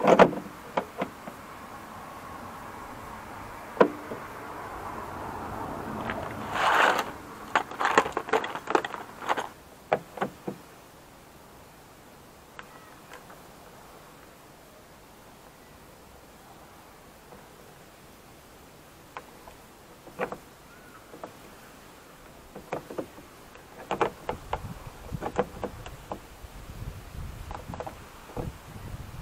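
Small metal parts click and rattle against a car door.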